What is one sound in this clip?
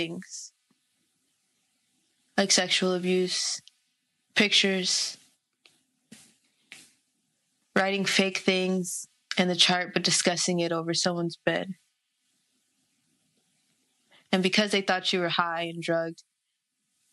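A young woman speaks calmly and closely, with pauses.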